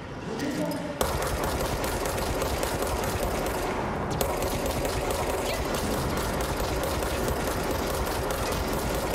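A pistol fires rapid shots close by.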